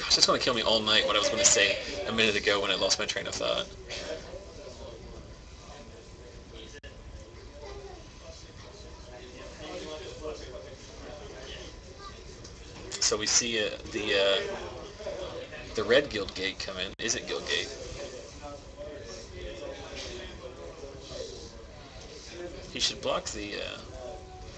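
Two men talk quietly nearby.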